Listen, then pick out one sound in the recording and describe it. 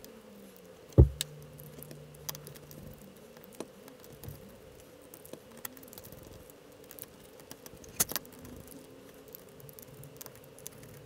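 A screwdriver scrapes and clicks as screws are turned.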